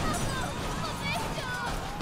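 A young girl cries out in fright.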